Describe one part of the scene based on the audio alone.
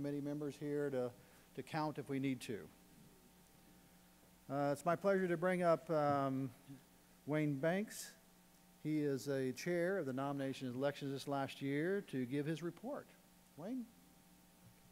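An elderly man speaks calmly through a microphone in a large hall.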